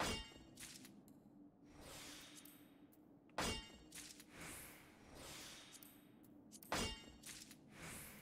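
A pickaxe strikes rock with a sharp ringing clang, again and again.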